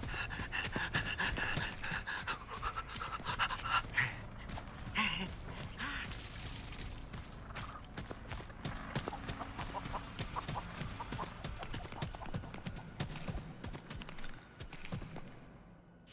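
Footsteps patter quickly over the ground.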